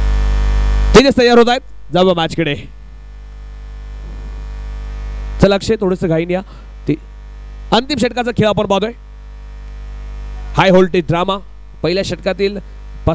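A young man speaks with animation close to a microphone, in short bursts.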